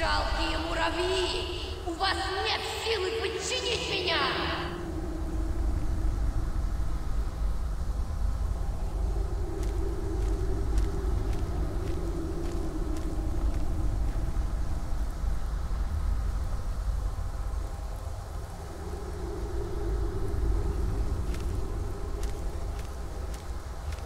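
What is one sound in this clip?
Magic energy crackles and hums.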